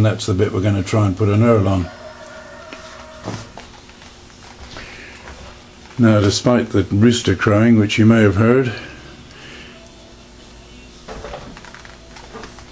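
A lathe hums steadily as it spins.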